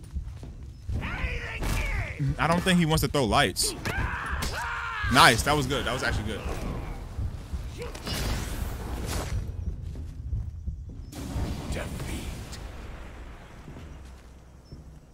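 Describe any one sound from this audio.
A man talks excitedly into a microphone, close by.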